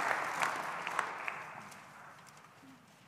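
An audience applauds in a large hall and the clapping fades away.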